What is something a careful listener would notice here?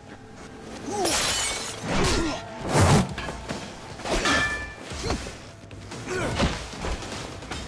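A bat strikes a man with heavy thuds.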